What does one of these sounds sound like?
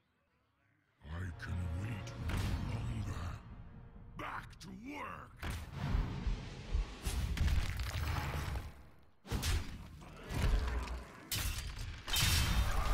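Fantasy card game effects whoosh, thud and crash.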